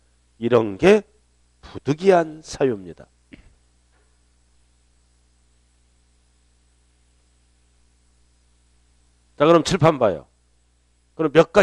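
A middle-aged man speaks into a headset microphone in short bursts, with long pauses.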